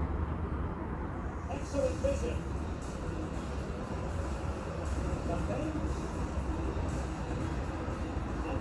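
A stadium crowd roars steadily through a television speaker.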